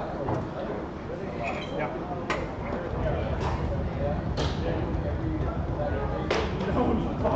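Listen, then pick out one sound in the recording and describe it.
A foosball ball knocks sharply against plastic figures and the table walls.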